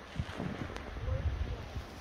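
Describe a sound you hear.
A dog runs through rustling grass.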